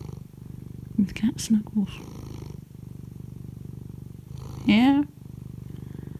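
A cat meows up close.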